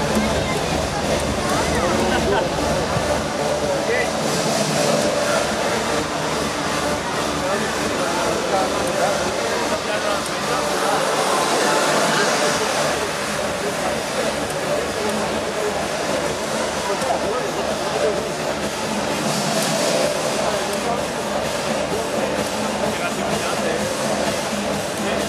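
Arcade game music and sound effects play loudly from a machine's speakers.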